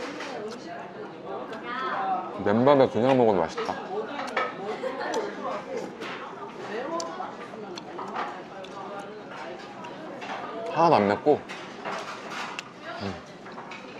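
Chopsticks clink against a pot.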